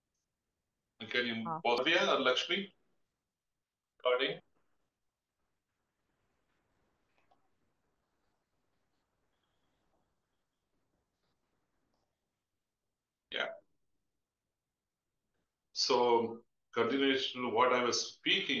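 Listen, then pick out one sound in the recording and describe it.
A man speaks calmly through an online call microphone, in short bursts with pauses.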